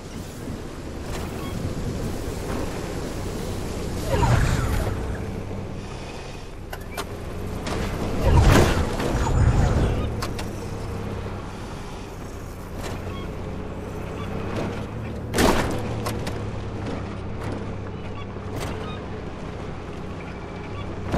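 An off-road buggy's engine hums.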